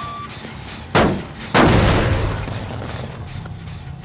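A metal machine bangs loudly as it is struck, then rattles and fades.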